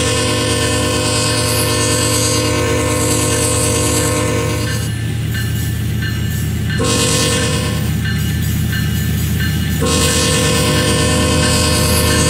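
A diesel locomotive engine rumbles low and steadily.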